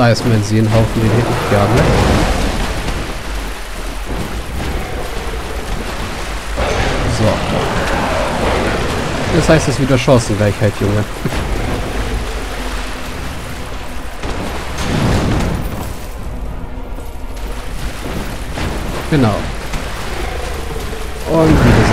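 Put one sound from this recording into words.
A sword swings and strikes with heavy blows.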